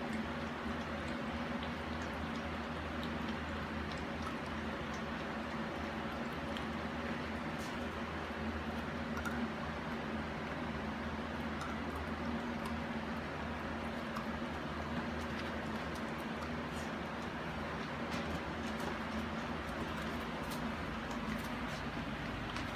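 Puppies crunch dry kibble from a metal bowl.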